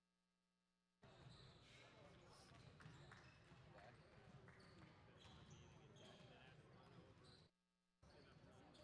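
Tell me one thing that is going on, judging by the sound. Sneakers squeak sharply on a hard floor in a large echoing hall.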